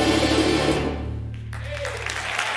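A big band plays a final chord in a large hall.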